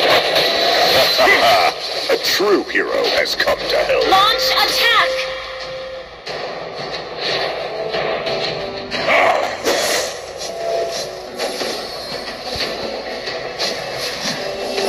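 Game sound effects of spells and hits clash and whoosh.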